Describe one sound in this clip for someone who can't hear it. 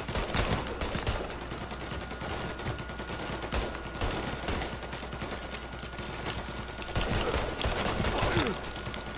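Pistol shots ring out in quick bursts, echoing off nearby walls.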